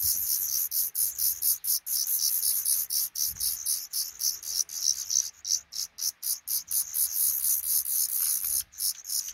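Nestlings chirp rapidly and shrilly, begging for food.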